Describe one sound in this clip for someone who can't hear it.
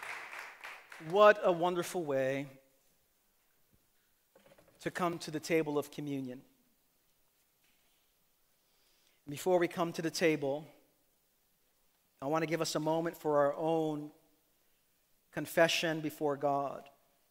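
A man speaks calmly and with feeling through a microphone, in bursts with long pauses.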